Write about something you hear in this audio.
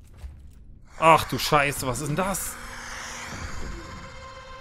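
A creature lets out a loud shrieking screech.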